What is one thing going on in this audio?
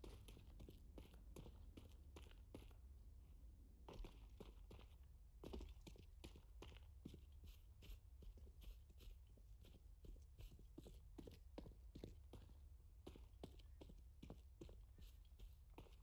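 Footsteps patter quickly on stone and grass.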